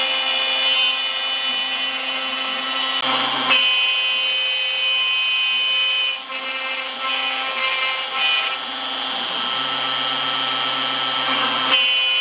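A router spindle whines at a high steady pitch as the bit carves wood.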